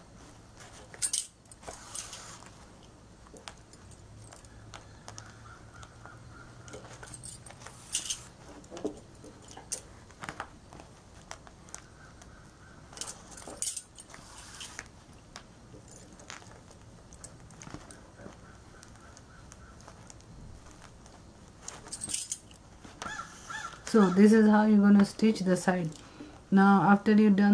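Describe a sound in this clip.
Bangles clink softly as hands move.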